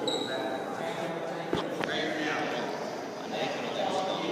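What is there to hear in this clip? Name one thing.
Wrestlers thump and scuffle on a mat.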